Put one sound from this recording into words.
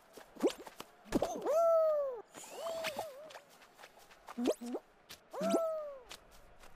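Cartoonish bouncy sound effects chirp and swoop as a game character jumps.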